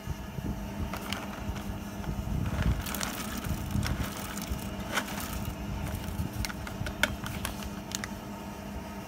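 A paper packet crinkles and rustles.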